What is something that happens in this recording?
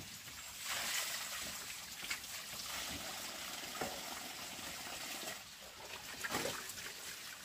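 A wooden block knocks against bamboo slats.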